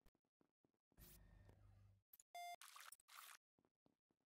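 A machine hums and beeps briefly.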